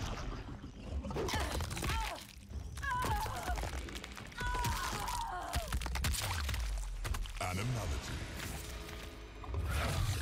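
Flesh tears with wet, squelching crunches.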